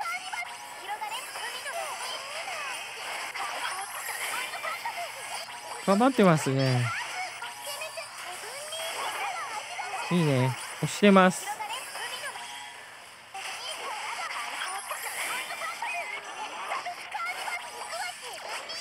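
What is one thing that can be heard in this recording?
Fast whooshing and chiming battle effects play.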